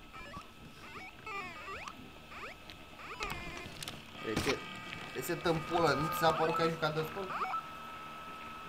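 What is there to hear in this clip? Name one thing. Electronic game sound effects bleep and chirp in quick sliding tones.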